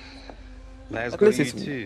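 A second man answers casually.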